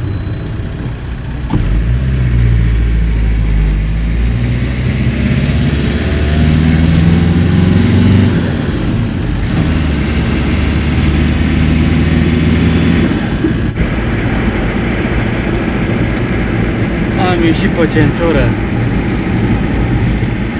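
Tyres roll steadily on an asphalt road.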